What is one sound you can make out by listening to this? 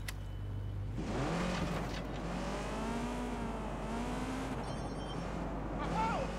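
A car engine revs and roars as the car drives off.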